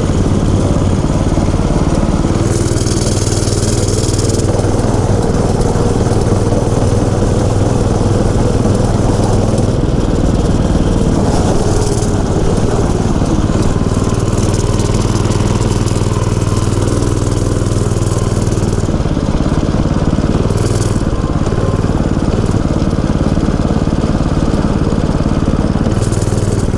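A small motorbike engine hums steadily up close.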